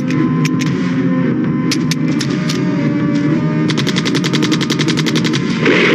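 Gunshots ring out, first singly and then in a rapid burst.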